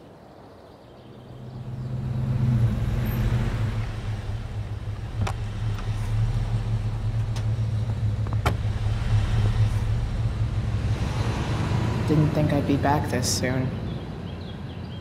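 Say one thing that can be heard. A bus engine rumbles low and steadily as the bus drives past.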